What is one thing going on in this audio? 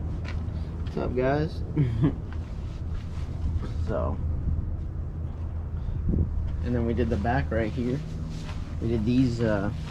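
A man talks close to the microphone.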